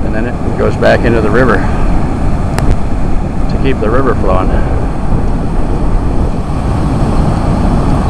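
Water roars steadily as it pours over a weir and churns below.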